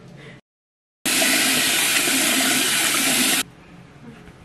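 Water splashes and runs from a tap.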